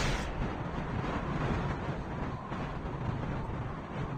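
A jetpack roars steadily in flight.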